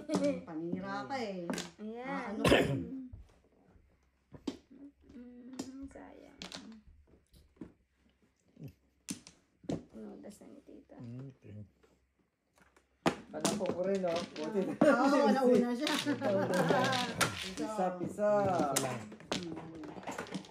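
Women chat and laugh close by.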